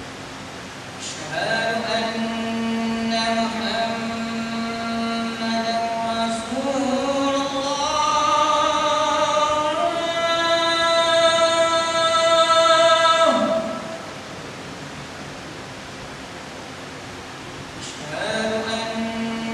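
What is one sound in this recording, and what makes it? A man chants a long, melodic recitation into a microphone, in an echoing hall.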